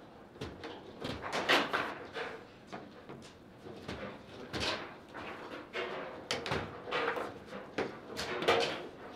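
A foosball ball knocks sharply against rods and players.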